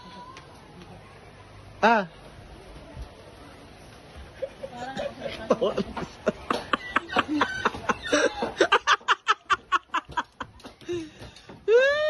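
A young woman laughs loudly and heartily close by.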